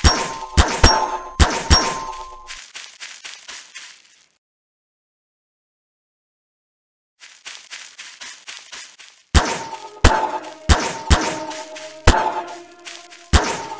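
A game tool fires repeatedly with sharp, ringing zaps.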